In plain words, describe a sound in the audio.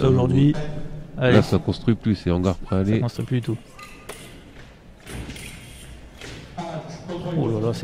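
Feet stamp on a fencing strip as fencers lunge.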